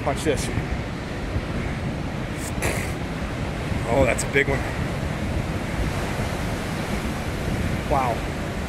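Waves crash and roar steadily against rocks below.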